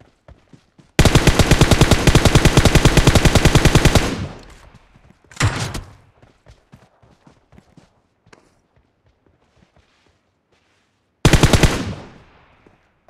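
Rapid automatic gunfire bursts loudly nearby.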